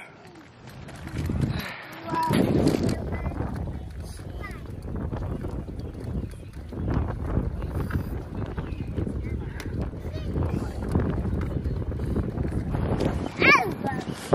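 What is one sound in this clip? Stroller wheels rumble steadily over concrete.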